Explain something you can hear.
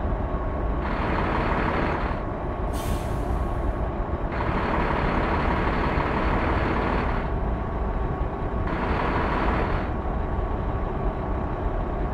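A truck engine drones steadily while driving along a road.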